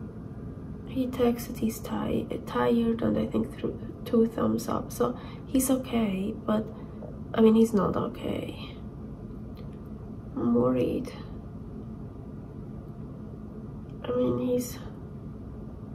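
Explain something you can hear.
A woman speaks calmly close to the microphone, in short bursts with pauses.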